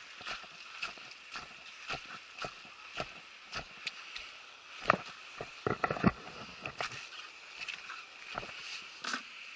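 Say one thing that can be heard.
Footsteps crunch on rocky ground at a steady walking pace.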